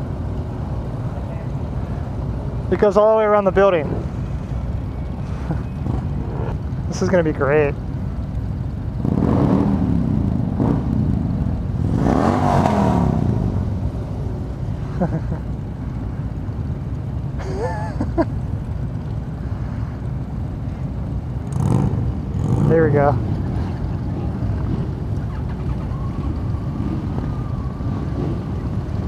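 Motorcycle engines idle and rumble steadily nearby.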